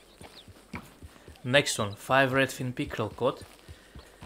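A horse's hooves clop slowly on a dirt path.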